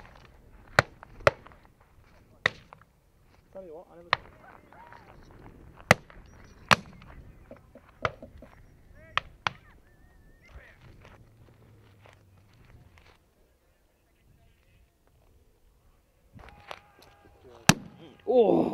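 Shotguns fire loud sharp shots again and again outdoors.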